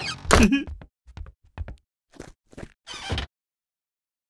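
Footsteps thump across a wooden bridge.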